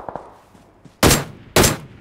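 Two loud, heavy gunshots ring out.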